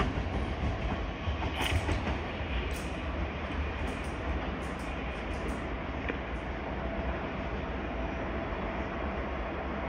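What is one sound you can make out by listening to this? A train rumbles slowly away in the distance.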